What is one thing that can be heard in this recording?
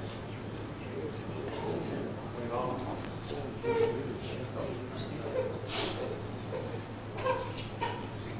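A man talks calmly at a distance in an echoing hall.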